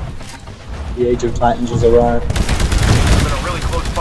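A rocket launcher fires a rapid burst of blasts.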